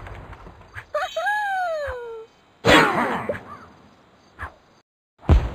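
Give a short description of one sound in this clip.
A cheerful jingle plays for a cleared level.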